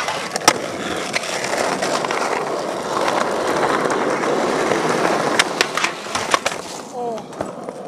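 Skateboard wheels roll and rumble on rough pavement.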